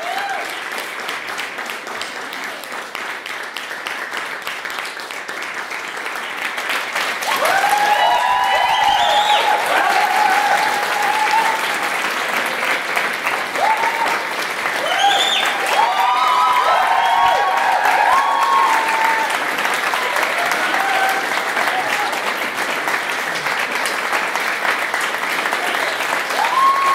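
A large group claps hands in lively applause.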